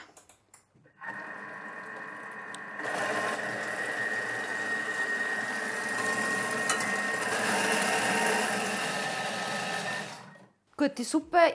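A kitchen machine whirs steadily.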